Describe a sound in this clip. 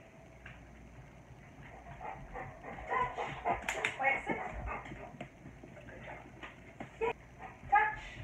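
A dog's claws click on a hard floor.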